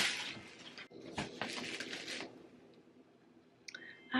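Fabric rustles as a sweatshirt is pulled on.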